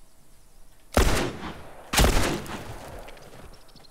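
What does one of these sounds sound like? A pistol fires loud shots close by.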